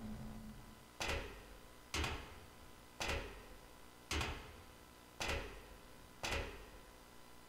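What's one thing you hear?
Hands and feet knock on metal ladder rungs in a slow, even rhythm.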